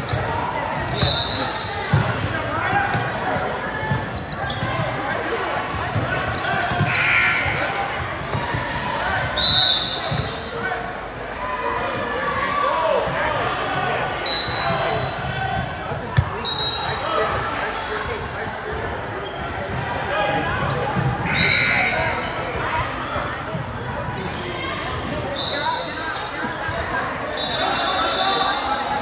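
A crowd of spectators chatters and calls out throughout.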